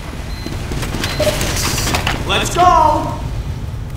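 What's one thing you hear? A flamethrower roars in a video game.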